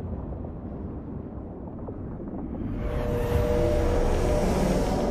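An electric beam crackles and hums steadily.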